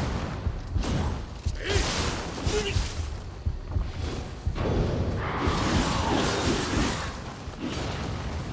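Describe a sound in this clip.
Sword blows strike and clash in quick bursts.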